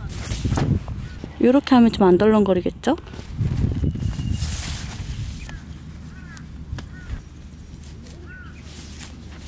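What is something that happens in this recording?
Tent fabric rustles and flaps as it is handled.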